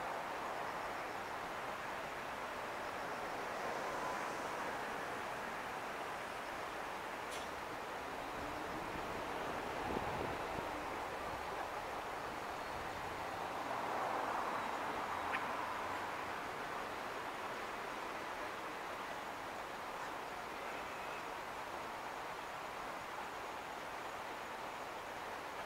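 Cars pass by on a road below.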